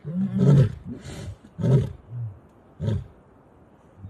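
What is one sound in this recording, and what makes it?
A lion growls and grunts loudly close by.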